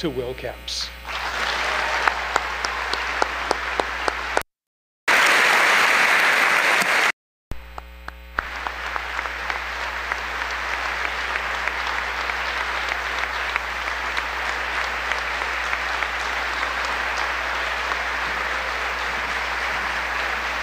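An audience applauds loudly and steadily.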